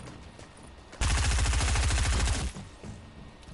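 A laser gun fires in a rapid, loud burst.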